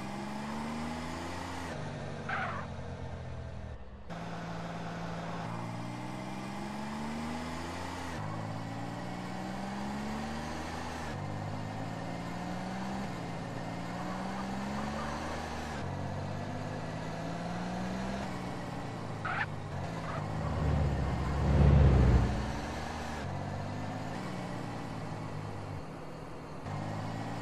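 A car engine revs up again and again, dropping back with each gear shift.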